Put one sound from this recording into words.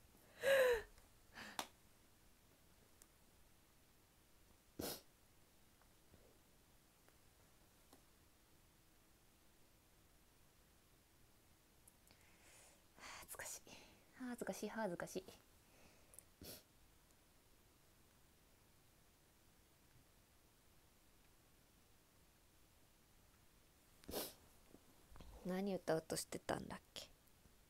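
A young woman speaks softly in short bursts close to a microphone.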